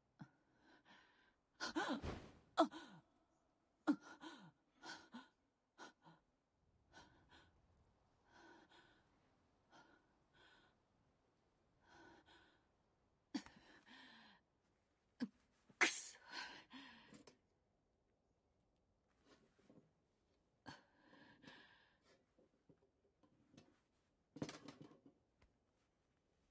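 A young woman breathes heavily and gasps.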